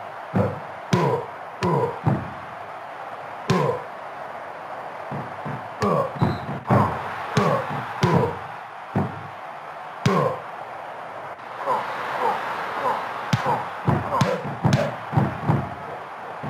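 Punches and body slams land with heavy thuds.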